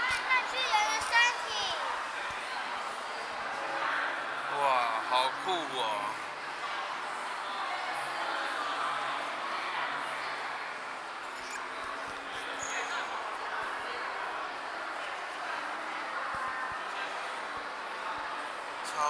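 A crowd murmurs and chatters in an echoing indoor hall.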